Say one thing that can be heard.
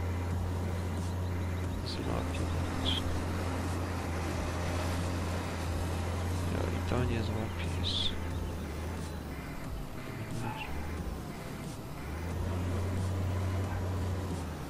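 A forage harvester roars as it chops crops.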